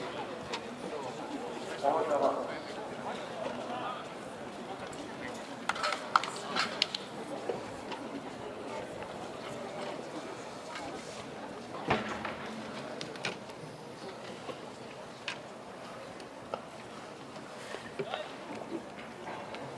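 Spectators murmur and chatter faintly in an open outdoor stadium.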